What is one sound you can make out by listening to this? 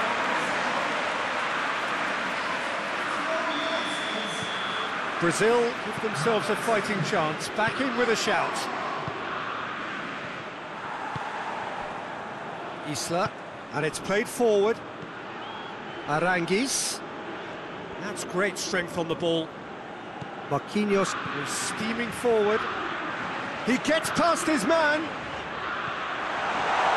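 A stadium crowd roars steadily in the background.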